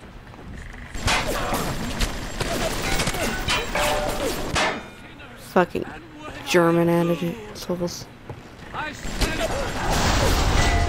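A machine gun fires in rapid, loud bursts.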